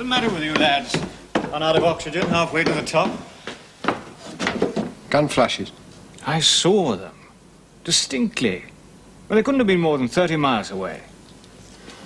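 A young man speaks earnestly, close by.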